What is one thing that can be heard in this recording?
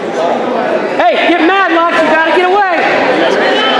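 A spectator shouts loudly in encouragement.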